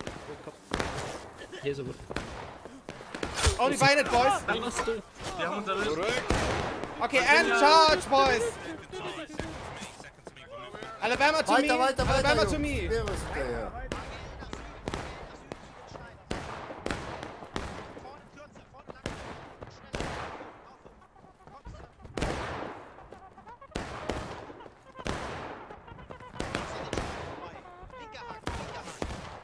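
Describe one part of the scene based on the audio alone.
Rifle shots crack in the distance and echo across open ground.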